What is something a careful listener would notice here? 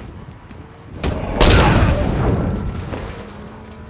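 A heavy blow lands with a loud thud and a rush of noise.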